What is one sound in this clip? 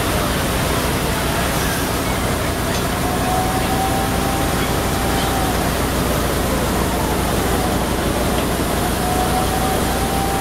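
A fire engine siren wails nearby, rising and falling.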